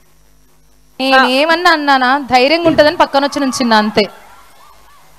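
A woman speaks with animation through a microphone over loudspeakers.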